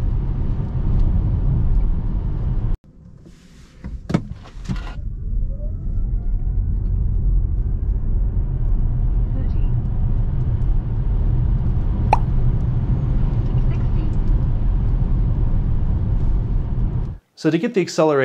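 A car's road noise rumbles steadily from inside the cabin.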